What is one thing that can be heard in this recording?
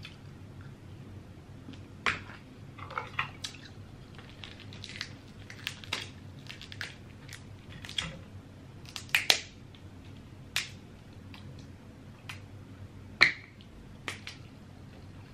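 Crab shells crack and snap close up.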